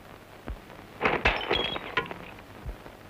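A glass bottle clatters and rolls across a floor.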